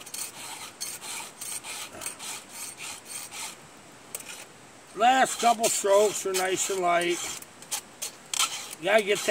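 A metal file rasps in short, quick strokes.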